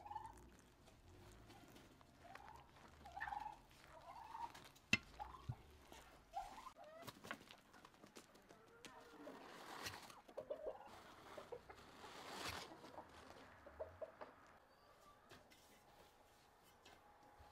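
A hand squishes and kneads soft dough.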